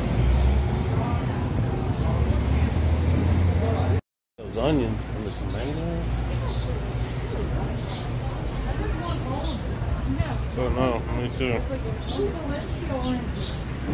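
Adult shoppers talk indistinctly at a distance.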